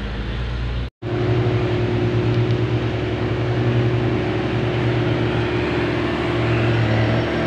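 A motorcycle engine hums as the motorcycle approaches along the road.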